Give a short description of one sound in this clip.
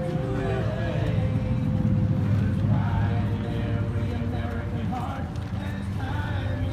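A crowd of men and women murmurs and chats outdoors.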